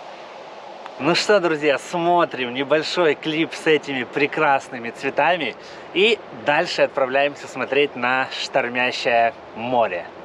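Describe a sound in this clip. A young man talks cheerfully and close by.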